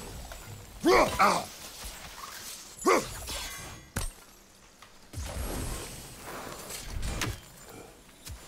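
A magical orb crackles and hums.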